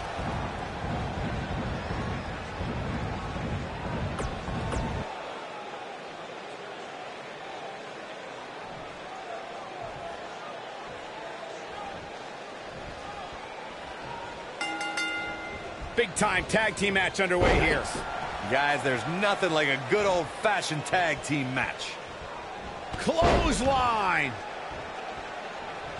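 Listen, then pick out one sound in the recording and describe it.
A large crowd cheers in an arena.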